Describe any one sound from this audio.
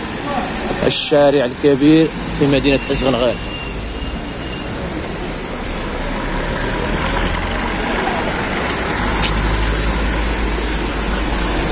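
Car tyres hiss past on a wet road.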